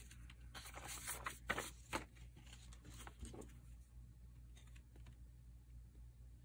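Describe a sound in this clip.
A plastic punch clicks as it is pressed.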